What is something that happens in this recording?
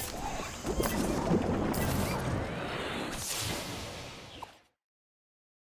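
A game menu whooshes and chimes as the selection changes.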